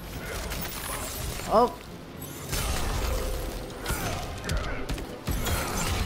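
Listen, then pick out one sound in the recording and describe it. Ice cracks and shatters in bursts.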